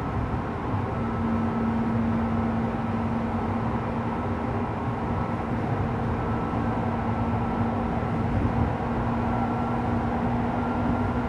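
A stopped train idles with a steady electric hum.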